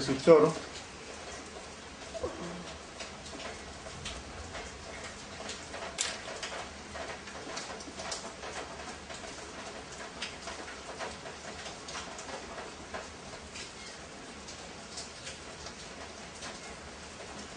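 A hand fiddles with a metal fitting on an engine, making small clicks and scrapes.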